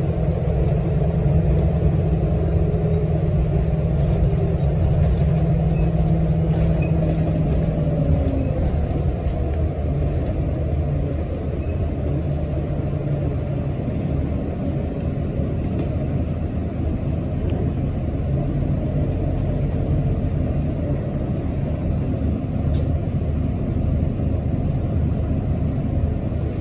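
A bus body rattles and hums over the road.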